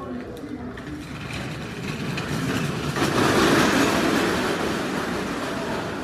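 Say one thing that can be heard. Stretcher wheels roll across pavement close by.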